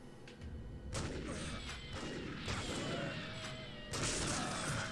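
A revolver fires loud shots close by.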